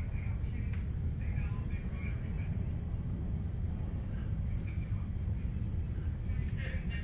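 Soft electronic menu blips sound as options are selected.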